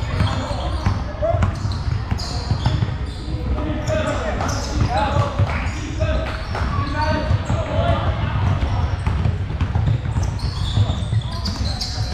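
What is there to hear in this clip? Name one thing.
A basketball bounces with dull thuds on the floor.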